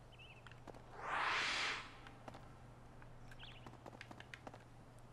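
Footsteps tap on stone at a walking pace.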